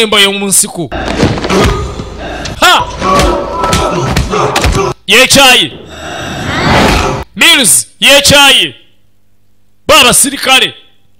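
A young man screams and yells in anguish, close by.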